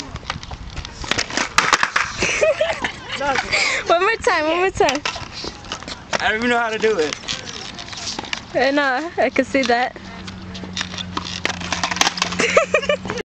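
A skateboard clacks and slaps against a hard court.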